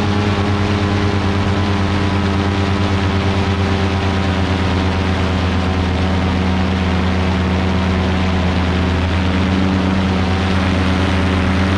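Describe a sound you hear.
A paramotor engine drones loudly and steadily close by.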